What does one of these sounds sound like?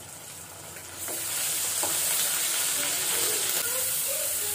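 A wooden spatula scrapes against a pan.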